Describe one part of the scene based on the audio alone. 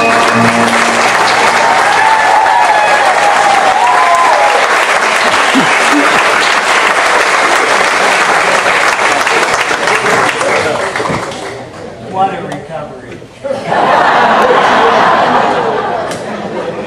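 An audience applauds loudly in a large hall.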